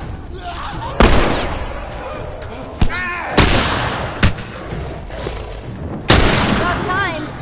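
Gunshots ring out loudly with echoes.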